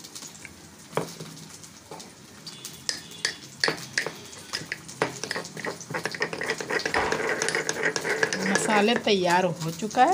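A metal pestle clinks and scrapes against a metal cup while stirring.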